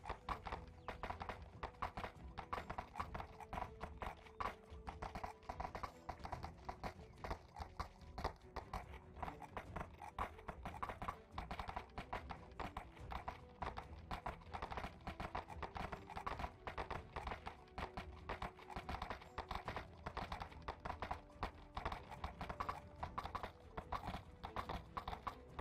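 Horse hooves clop steadily on a stony path.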